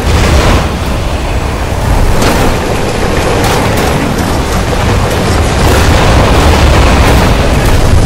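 Bursts of noise whoosh as a game vehicle boosts.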